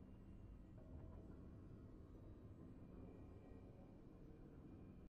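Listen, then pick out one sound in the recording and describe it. A triumphant game fanfare plays softly.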